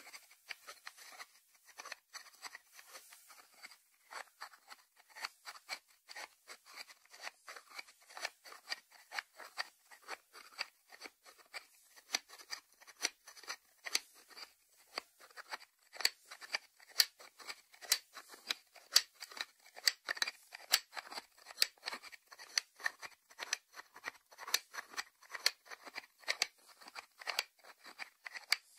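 Fingertips tap on a ceramic lid in quick, light clicks.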